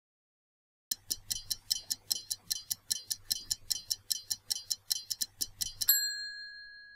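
A stopwatch ticks quickly and steadily.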